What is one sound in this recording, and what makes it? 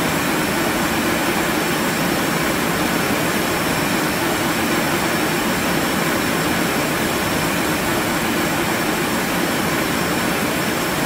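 A jet's engines drone steadily in flight.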